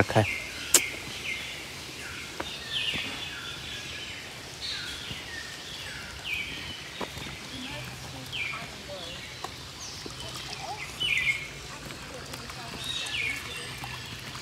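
Footsteps scuff steadily along a stone path outdoors.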